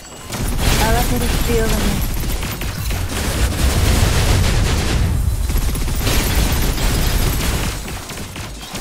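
Explosions boom with deep rumbling.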